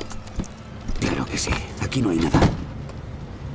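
A wooden crate lid creaks and bangs open.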